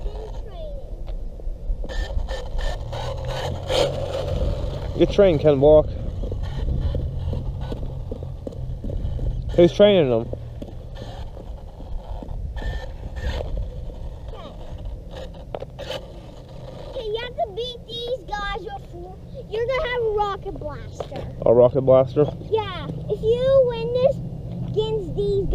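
A remote-control toy car whirs as it drives over rough pavement.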